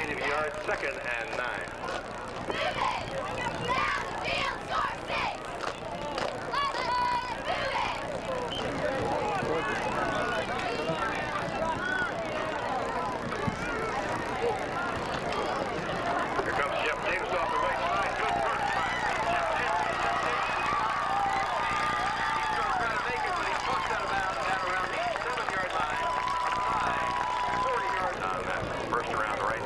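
A crowd of spectators cheers and shouts across a large outdoor field.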